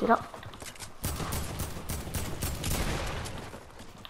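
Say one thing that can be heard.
Assault rifle gunfire in a video game fires in rapid bursts.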